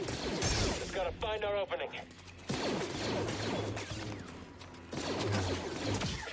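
A blaster fires sharp zapping shots.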